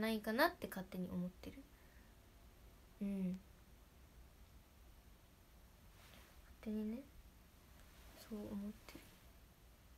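A young woman speaks softly in short bursts, close to a microphone.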